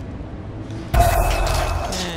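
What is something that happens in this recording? A blade slashes with a sudden sharp swish.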